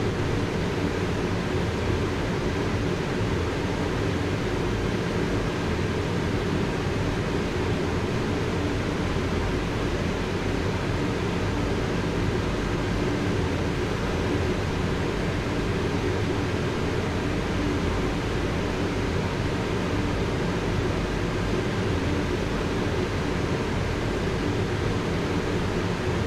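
A high-speed electric train rumbles steadily along the tracks at speed.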